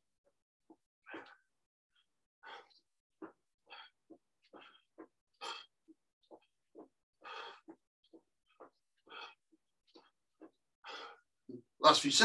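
A middle-aged man breathes hard in short puffs.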